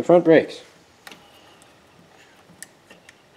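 A bicycle brake cable clicks and rattles as fingers handle it.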